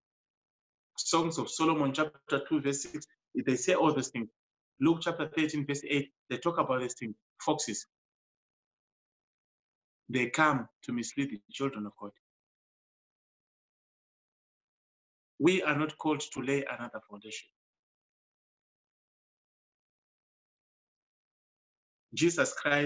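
A middle-aged man speaks calmly into a microphone close by, in short bursts with pauses, as if on an online call.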